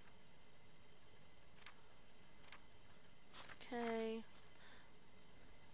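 Papers rustle and slide on a desk.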